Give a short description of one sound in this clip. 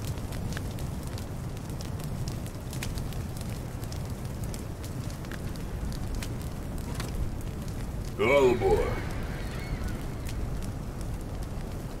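A fire crackles and roars steadily.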